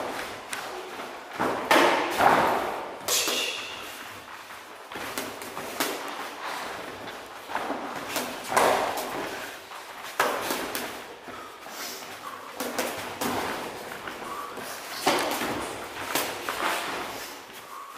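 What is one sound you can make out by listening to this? Boxing gloves thud against padded gloves in sparring.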